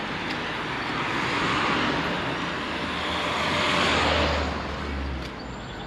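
A car drives past on the road.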